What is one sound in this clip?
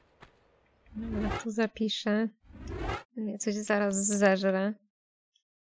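A young woman speaks with animation into a nearby microphone.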